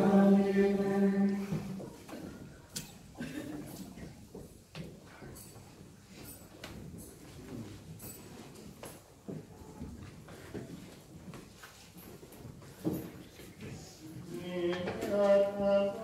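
Voices sing a sustained chant in an echoing hall.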